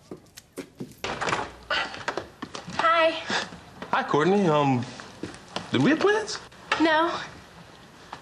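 A young man talks with animation.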